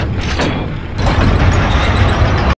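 A heavy mechanism rumbles into motion.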